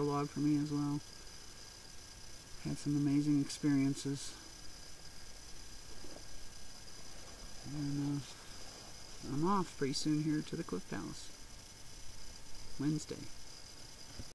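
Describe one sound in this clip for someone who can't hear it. A middle-aged woman speaks slowly and emotionally, close to the microphone.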